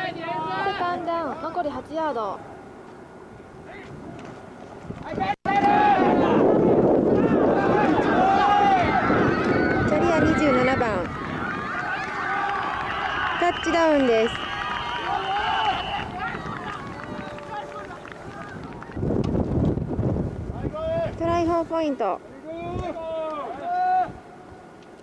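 A man shouts calls on the field.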